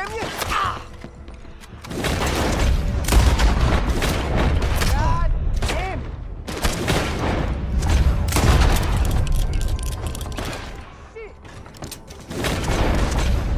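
Gunshots crack loudly, one after another.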